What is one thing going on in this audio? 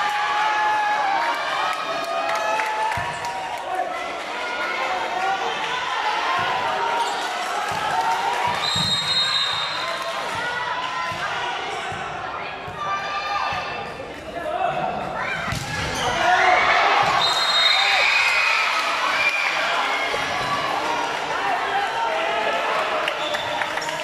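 Many young people chatter and shout in a large echoing hall.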